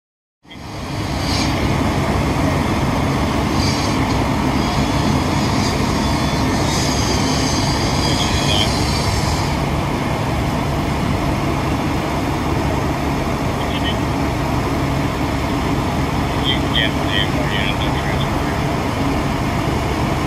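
A diesel fire engine's pump runs with a steady low drone.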